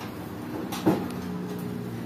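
A power grinder hums steadily.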